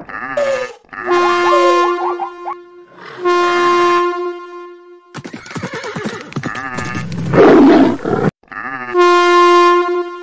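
A steam train's whistle blows in long steady blasts.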